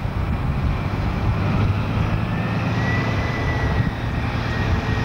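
A diesel train engine roars loudly as it pulls in close by.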